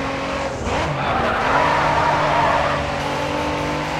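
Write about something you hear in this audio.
Tyres screech as a sports car slides through a turn.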